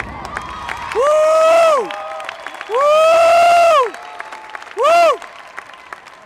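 A crowd of young women cheers loudly.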